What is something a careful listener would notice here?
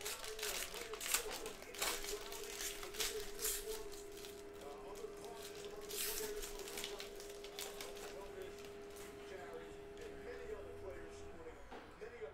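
Foil wrapping crinkles and tears as it is pulled open.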